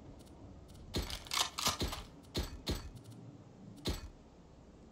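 Sharp menu clicks sound as items are bought.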